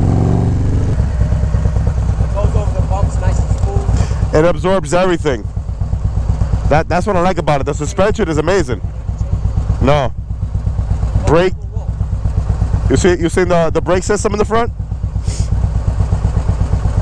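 A motorcycle engine idles with a steady deep throb.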